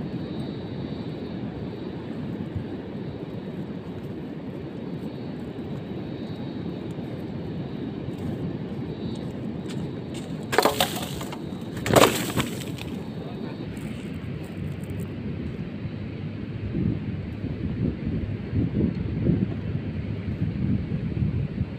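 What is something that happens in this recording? Wind rumbles outdoors and buffets a plastic bag close by.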